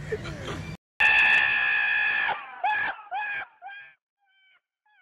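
A donkey brays loudly.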